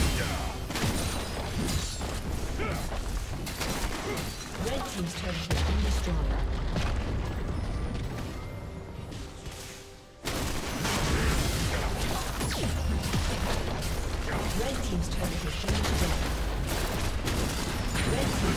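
Magic blasts and hits crackle and thump in a busy fantasy battle.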